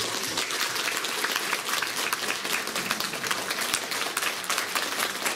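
An audience applauds warmly in a hall.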